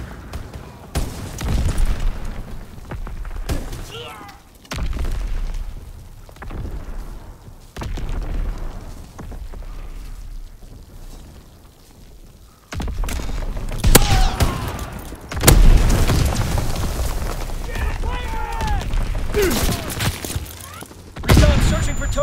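A pump-action shotgun fires.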